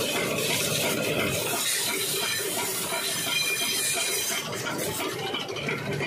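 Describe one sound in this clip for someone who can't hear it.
Water sprays hard from a hose and splashes onto metal.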